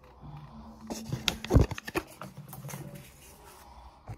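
A plastic bottle crinkles and clicks in a hand.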